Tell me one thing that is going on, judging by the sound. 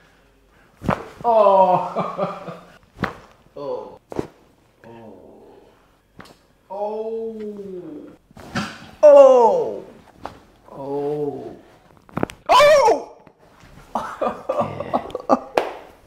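A young man groans and cries out loudly in pain.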